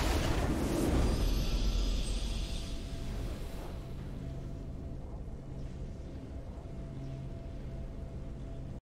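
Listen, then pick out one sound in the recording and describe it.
A triumphant fanfare swells and then fades out.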